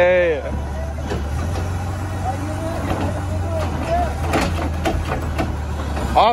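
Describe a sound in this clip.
A garbage truck's hydraulic arm whines as it lifts a bin.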